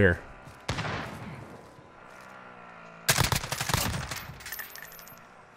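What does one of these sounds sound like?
Gunshots ring out in quick bursts with a booming echo.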